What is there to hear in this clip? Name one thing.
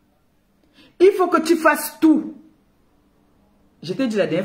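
A woman speaks with animation close to a microphone.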